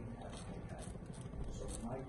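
A metal spoon scrapes against a frying pan.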